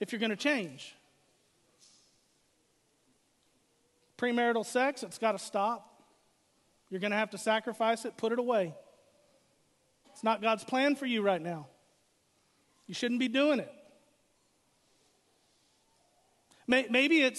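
A middle-aged man speaks steadily into a microphone, pausing between phrases.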